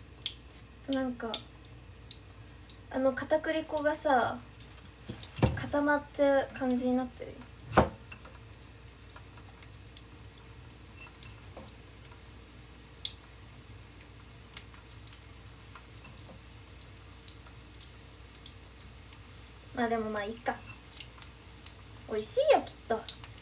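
A young woman speaks close to the microphone in short bursts.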